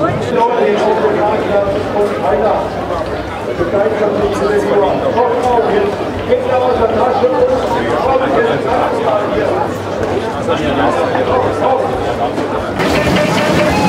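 A large crowd chatters and talks outdoors.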